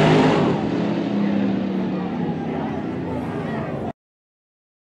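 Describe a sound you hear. A race car engine roars down a track.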